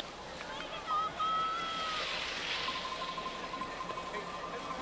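A crowd of spectators chatters and calls out in the distance.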